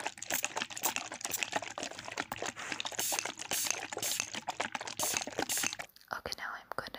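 Small grains rattle and swish inside a glass jar that is being shaken close by.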